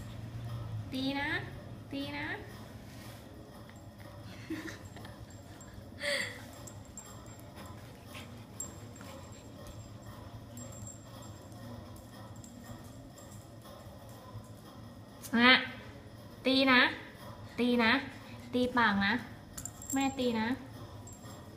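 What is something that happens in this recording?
A golden retriever puppy whimpers and yips.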